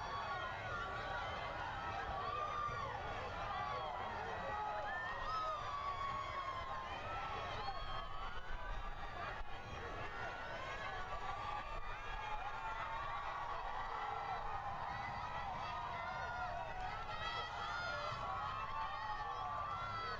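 A large crowd cheers and shouts with excitement outdoors.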